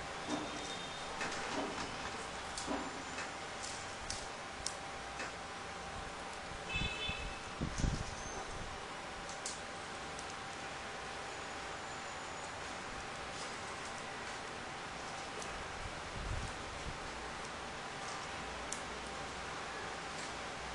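Paper pieces rustle and crinkle as hands fold and insert them.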